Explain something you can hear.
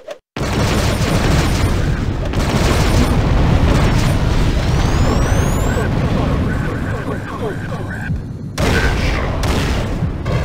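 Small explosions pop.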